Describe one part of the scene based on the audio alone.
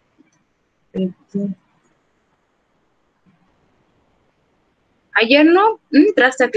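A young woman speaks calmly through a computer microphone, in short bursts between pauses.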